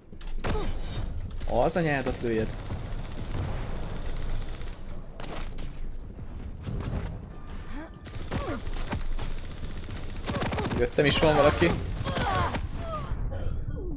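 Guns fire in rapid bursts of sharp shots.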